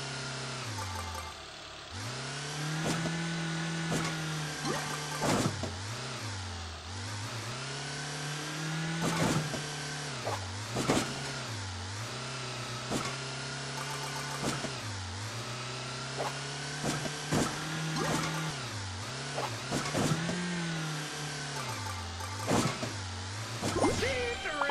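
Coins chime in quick clinks.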